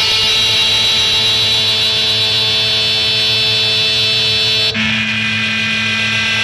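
Loud electronic music plays through an amplifier in long, sustained droning tones that shift suddenly near the end.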